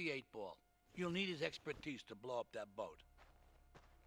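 An elderly man speaks calmly in a low voice.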